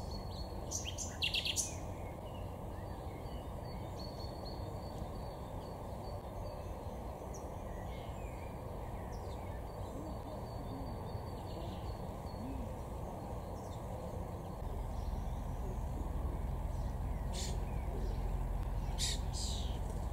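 A small bird chirps sharply now and then, close by.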